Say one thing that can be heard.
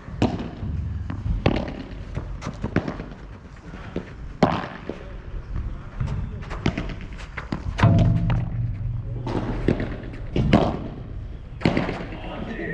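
Paddles smack a ball back and forth with sharp pops.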